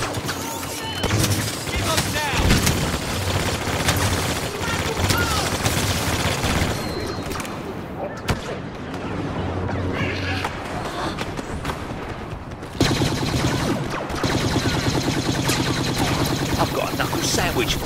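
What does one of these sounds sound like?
Blaster guns fire bursts of shots.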